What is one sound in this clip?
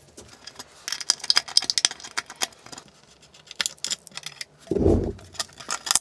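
A screwdriver scrapes and clicks against a metal plate.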